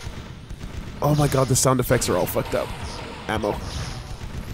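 A gun fires in rapid shots.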